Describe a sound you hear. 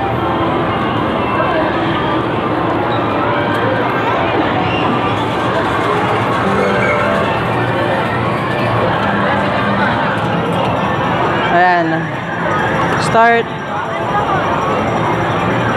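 Arcade machines play electronic music and jingles all around in a noisy hall.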